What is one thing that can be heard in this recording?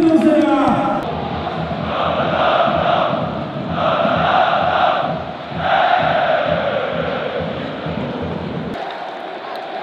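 A large stadium crowd chants loudly in rhythm.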